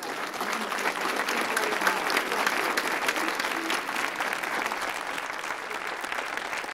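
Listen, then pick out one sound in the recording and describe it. An audience claps and applauds in a large room.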